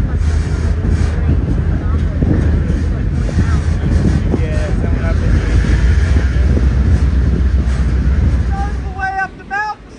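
Wind blows hard outdoors, rumbling against the microphone.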